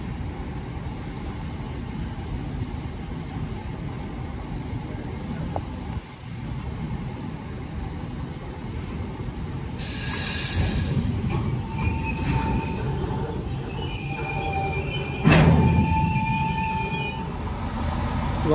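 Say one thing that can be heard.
A freight train rumbles past close by, wheels clattering on the rails.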